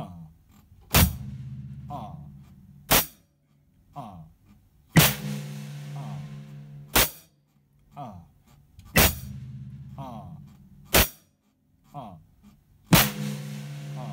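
A bass drum thumps and rings.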